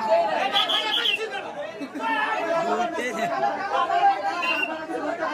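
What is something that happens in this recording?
A crowd of young men shouts and cheers nearby.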